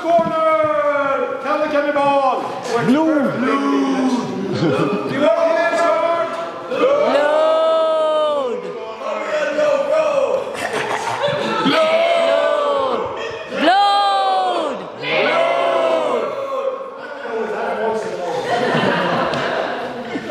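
A man speaks loudly and theatrically in an echoing hall.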